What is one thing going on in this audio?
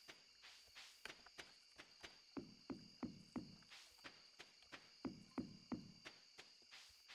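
Footsteps thud quickly and evenly.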